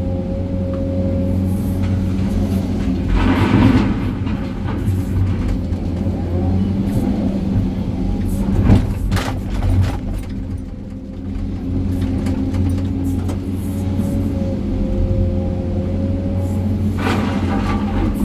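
A heavy diesel engine hums steadily from inside a cab.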